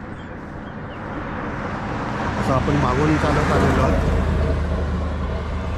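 A pickup truck approaches along the road with a growing roar of tyres and engine.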